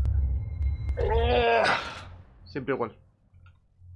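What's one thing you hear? A young man cries out loudly and groans close to a microphone.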